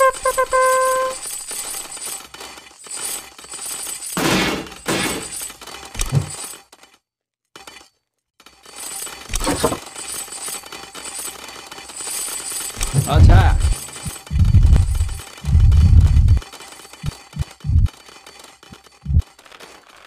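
A battle rages with clashing weapons and crashing blows.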